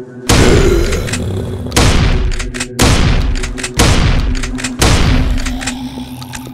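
A shotgun fires loud single blasts.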